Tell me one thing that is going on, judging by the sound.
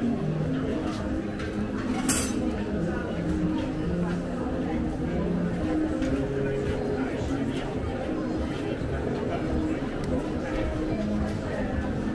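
A crowd of people talks in a murmur outdoors.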